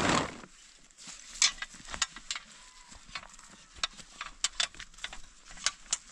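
A stone roller crunches over dry straw with scattered crackles.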